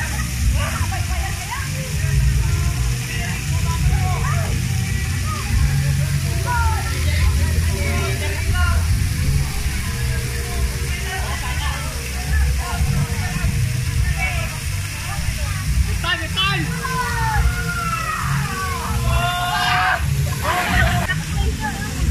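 Water trickles and splashes down a wall.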